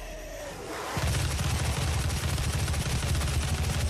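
Rapid gunfire blasts loudly.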